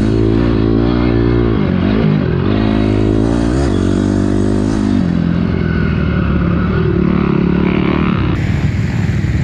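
A motorbike engine roars and revs up and down close by.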